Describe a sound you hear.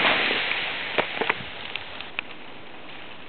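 Ice-coated branches click and crackle.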